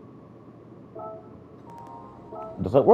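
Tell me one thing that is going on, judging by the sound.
Soft electronic menu chimes sound as selections are made.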